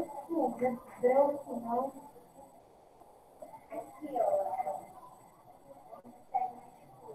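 A woman speaks calmly through a computer microphone, as in an online call.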